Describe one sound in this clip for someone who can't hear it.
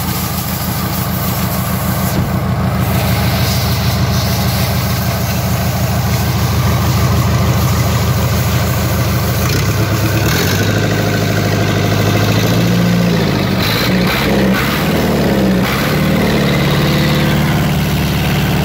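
A diesel engine runs with a loud, steady clatter close by.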